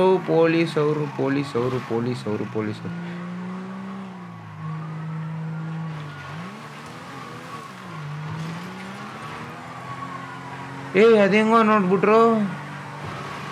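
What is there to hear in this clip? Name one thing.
A car engine hums and revs as a car drives fast.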